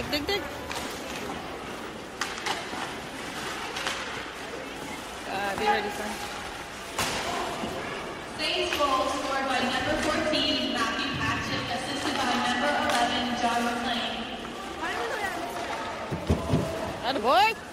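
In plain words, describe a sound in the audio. Skate blades scrape and hiss across ice in a large echoing hall.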